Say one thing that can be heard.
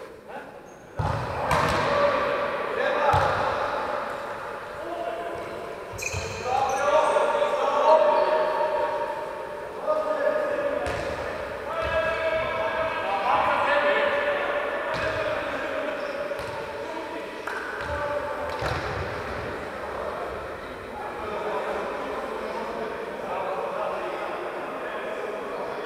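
A ball thuds against the floor and walls in a large echoing hall.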